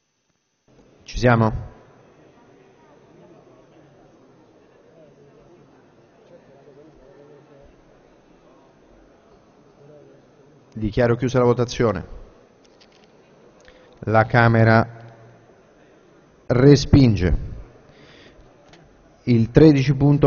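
A man speaks through a microphone in short announcements, echoing in a large hall.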